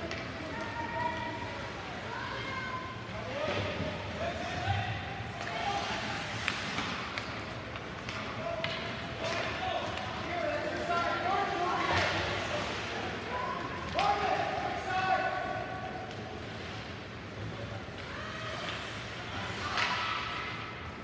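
Ice skates scrape and swish across the ice.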